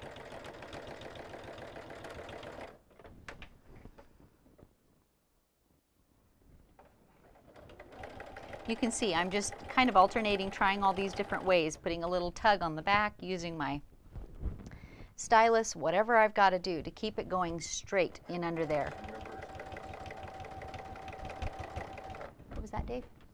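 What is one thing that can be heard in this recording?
A sewing machine hums steadily as it stitches.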